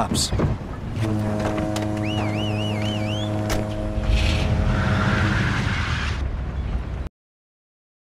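A car engine starts and runs with a steady hum.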